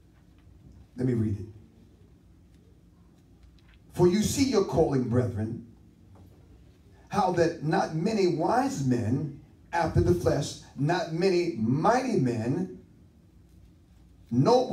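A man preaches with animation through a microphone.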